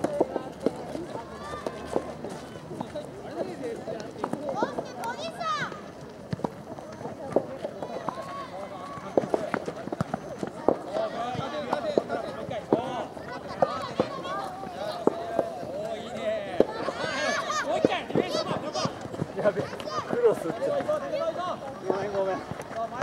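Young players shout and call out to each other across an open field.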